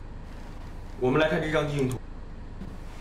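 A man speaks briefly with animation.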